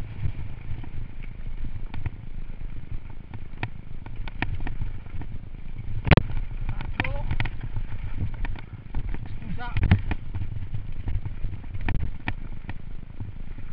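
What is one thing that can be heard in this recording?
A bicycle rattles and clatters over a bumpy dirt track.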